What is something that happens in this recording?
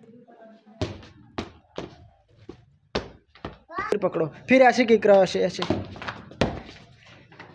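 A ball bounces and thuds on a hard floor.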